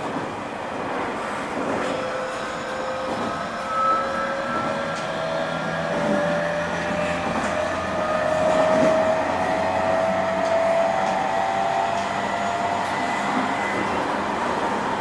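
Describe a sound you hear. An electric train's motors whine and slowly rise in pitch.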